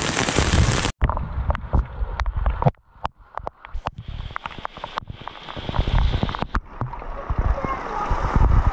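Water runs and splashes as it pours off a roof edge.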